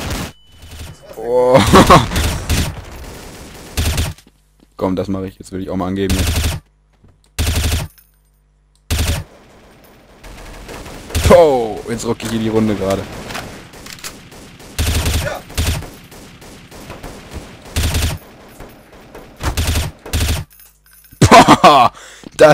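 A rifle fires short bursts of shots.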